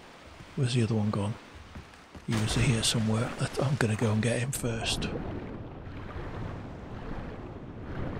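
Water splashes and gurgles.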